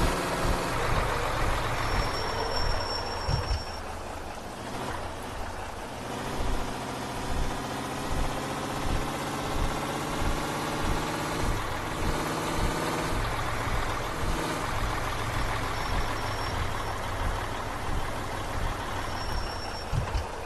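A bus engine hums steadily and changes pitch as the bus speeds up and slows down.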